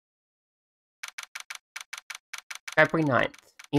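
A typewriter-like ticking clicks out in quick, even beats.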